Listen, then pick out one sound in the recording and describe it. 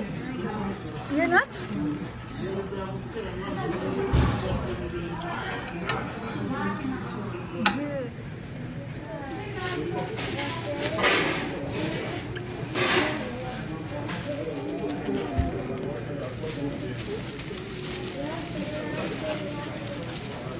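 Young women chat nearby in a busy room.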